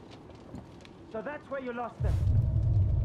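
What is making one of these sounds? An elderly woman asks a question.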